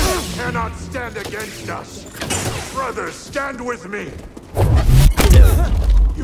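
A lightsaber hums and swings with loud whooshes.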